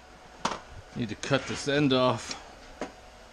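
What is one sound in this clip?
A metal toolbox drawer slides and clanks.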